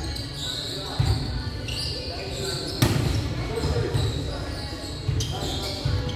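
A volleyball thumps when it is hit.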